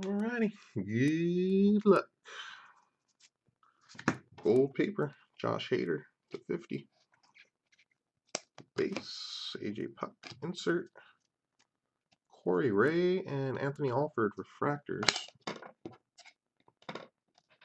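Trading cards flick and slide against each other in hands.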